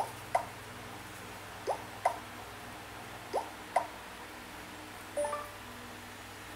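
Short electronic game sounds chirp and blip.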